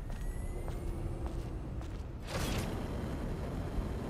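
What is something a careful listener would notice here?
A huge machine clanks and whirs.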